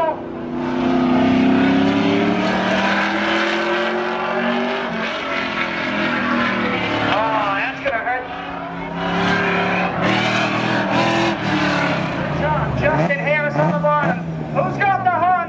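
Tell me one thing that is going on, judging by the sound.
A car engine roars loudly as a car speeds along a track.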